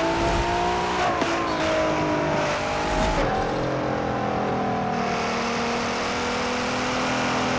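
A racing car engine roars steadily, with gear shifts that briefly change its pitch.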